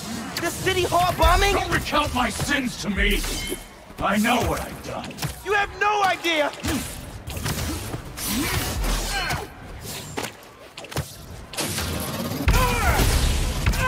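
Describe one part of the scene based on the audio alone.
Heavy blows land with deep thuds and whooshes during a fight.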